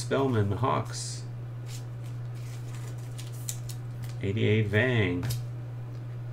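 Trading cards slide and tap in hands.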